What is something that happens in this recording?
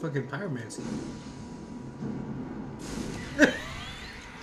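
A fireball whooshes and bursts with a roar.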